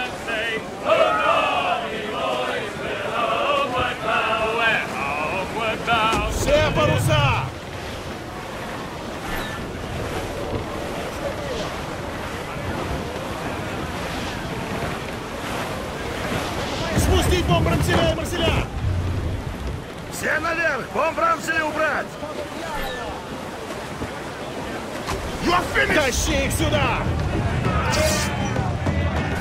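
Waves splash and roll against a wooden ship's hull.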